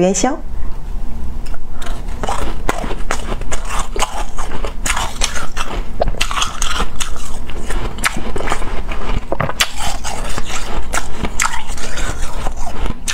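Ice crunches and crackles as a young woman chews.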